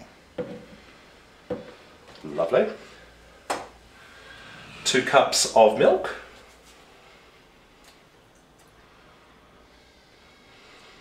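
Milk pours into a blender jug with a soft splashing.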